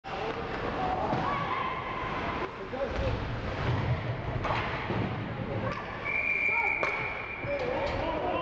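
Spectators shout and cheer in the echoing rink.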